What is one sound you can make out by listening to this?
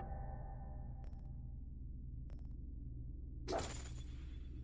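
Soft menu clicks tick as options are selected.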